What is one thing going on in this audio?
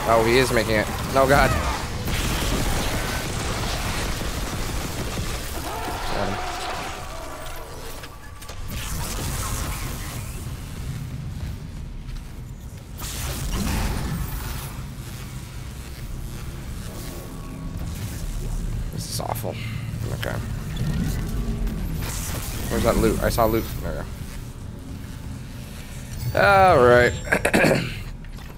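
A creature shrieks and snarls close by.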